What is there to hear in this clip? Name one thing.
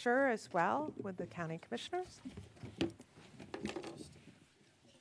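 A woman speaks into a microphone in a large room.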